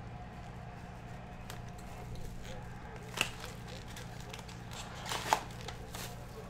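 Plastic wrapping crinkles and tears as a card pack is opened by hand.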